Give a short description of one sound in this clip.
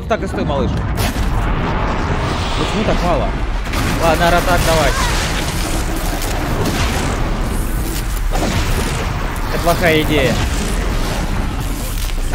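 Game weapons fire and metal clangs in a noisy battle.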